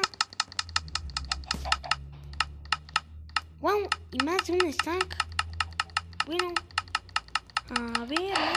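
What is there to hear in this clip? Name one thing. Quick, crisp clicks of a game interface repeat rapidly.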